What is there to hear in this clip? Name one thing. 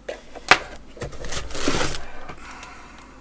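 Plastic packaging crinkles.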